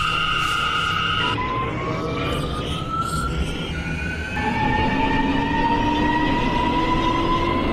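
Train wheels rumble and clatter on the rails.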